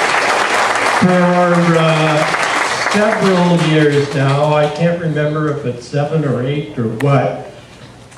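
A man speaks to the crowd.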